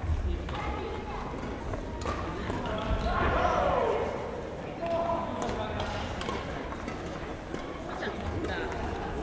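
Shoes squeak on the hall floor.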